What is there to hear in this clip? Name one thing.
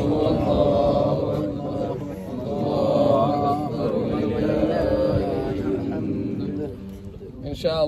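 Several men talk at once in a group.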